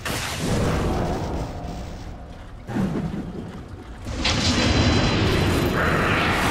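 Fiery magic spells whoosh and crackle in bursts.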